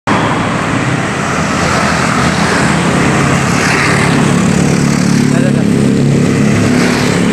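Motorbike engines buzz past close by.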